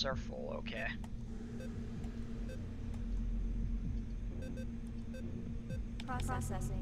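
Short electronic blips sound as menu items are selected.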